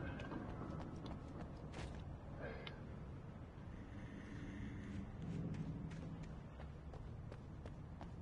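Footsteps run over the ground.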